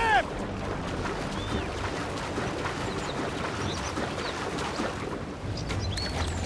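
Water splashes as a swimmer strokes through it.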